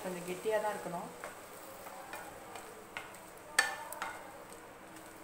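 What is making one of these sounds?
A wooden spatula stirs a thick potato mixture in a pan.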